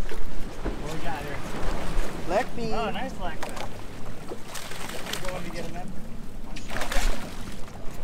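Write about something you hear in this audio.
Waves slosh against the side of a boat.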